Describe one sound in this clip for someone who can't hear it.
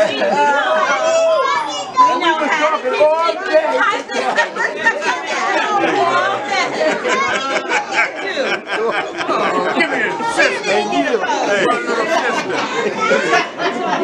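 A middle-aged woman laughs and shouts with delight.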